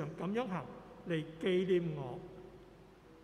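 A man chants through a microphone in an echoing hall.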